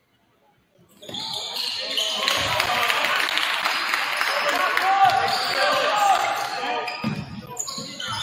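A crowd of spectators cheers in a large echoing gym.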